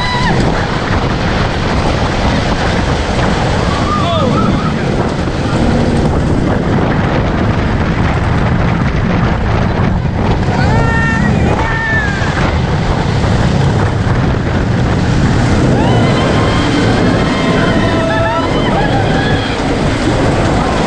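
A young woman laughs and screams close by.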